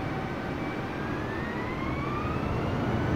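A jet engine's whine rises sharply in pitch.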